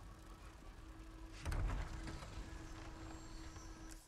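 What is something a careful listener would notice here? Heavy wooden doors creak and swing open with a deep thud.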